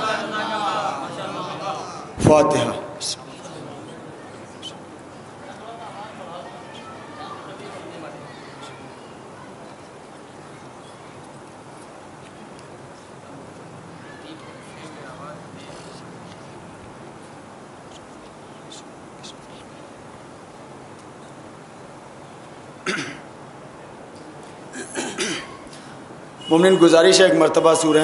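A man recites in a mournful, singing voice into a microphone.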